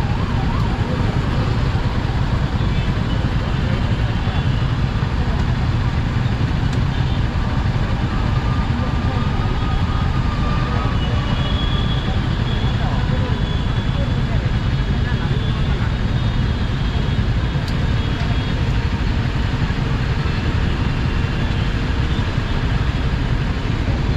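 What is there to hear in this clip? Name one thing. Motorcycle engines idle and rumble steadily close by.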